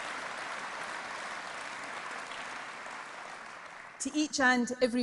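A large crowd applauds in a big echoing hall, then fades.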